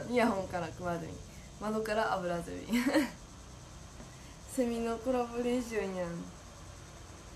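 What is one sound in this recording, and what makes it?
A young woman talks cheerfully and close up.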